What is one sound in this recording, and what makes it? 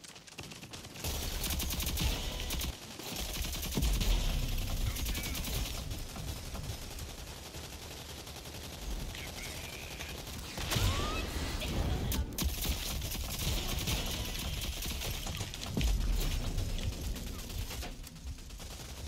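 Gunfire from a game crackles in rapid bursts.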